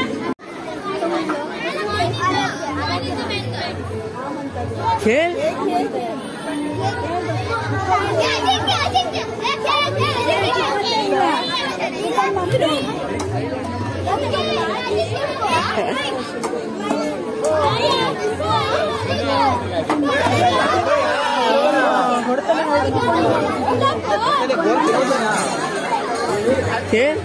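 Young girls chatter and call out excitedly nearby.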